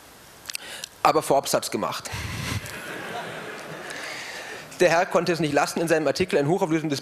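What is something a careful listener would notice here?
A man speaks through a microphone and loudspeakers in a large echoing hall.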